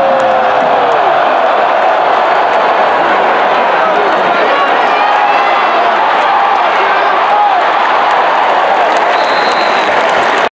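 A huge stadium crowd roars and cheers loudly throughout.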